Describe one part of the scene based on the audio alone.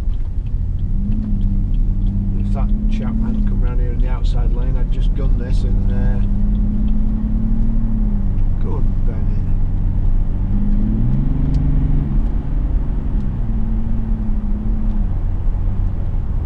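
A car engine hums and rises and falls in pitch as the car speeds up.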